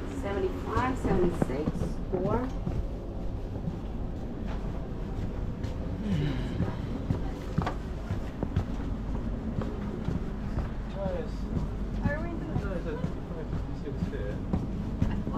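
A low, steady rumble fills a train carriage.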